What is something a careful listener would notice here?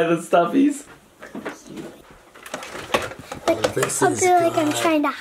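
Toys knock and rustle as they are moved about.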